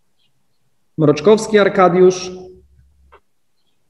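A young man speaks calmly through an online call.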